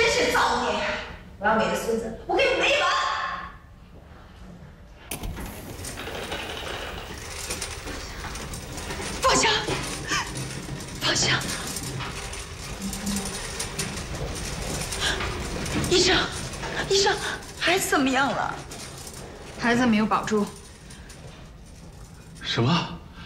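A middle-aged woman speaks angrily.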